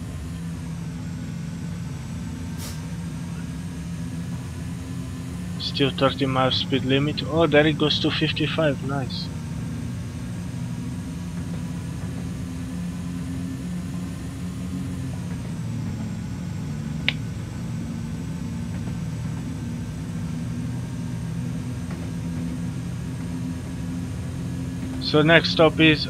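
Train wheels rumble and clatter over the rails.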